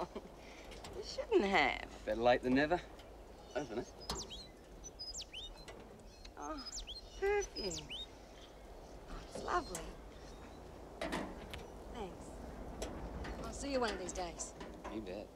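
A woman speaks warmly and close by.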